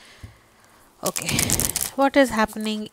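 A deck of cards riffles quickly as it is shuffled.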